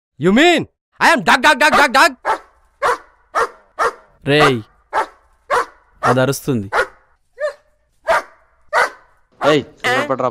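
A dog barks loudly again and again.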